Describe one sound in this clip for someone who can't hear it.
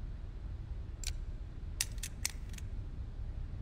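Metal dials of a combination lock click as they turn.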